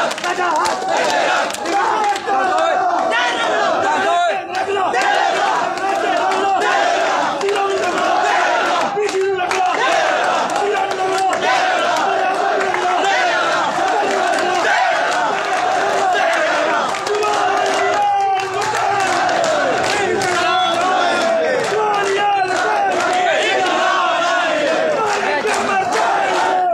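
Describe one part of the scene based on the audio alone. A large crowd of men chants and shouts loudly outdoors.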